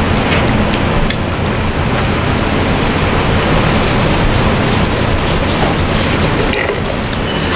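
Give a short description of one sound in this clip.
A young girl sips a drink through a straw.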